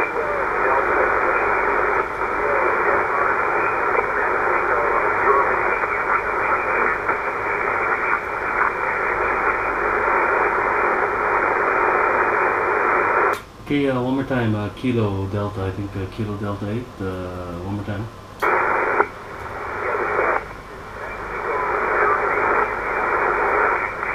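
A radio receiver hisses with static.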